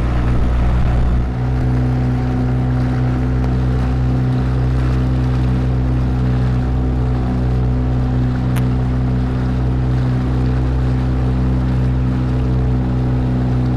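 A boat's motor hums steadily and close by.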